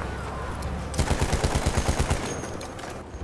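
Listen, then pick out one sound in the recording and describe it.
A heavy machine gun fires a rapid burst.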